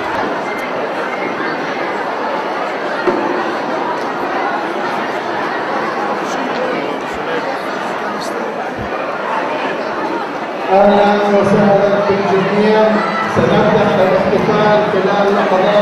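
A large crowd murmurs and chatters nearby.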